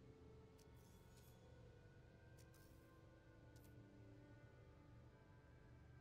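A beam hums with a steady low drone.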